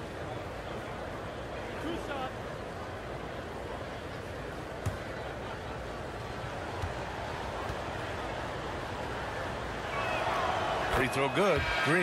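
A large crowd murmurs in an echoing arena.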